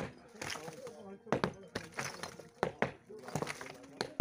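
A sledgehammer pounds a brick wall.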